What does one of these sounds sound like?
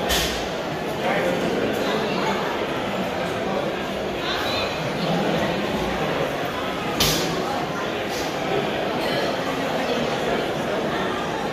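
A crowd of people chatters throughout a large, echoing indoor hall.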